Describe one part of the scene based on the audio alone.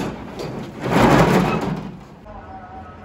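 A metal roller shutter rattles loudly.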